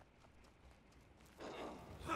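A fire crackles.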